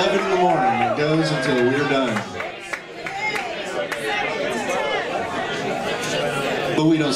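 A band of acoustic guitars strums a lively tune.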